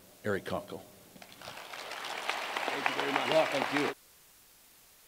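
People applaud in a room.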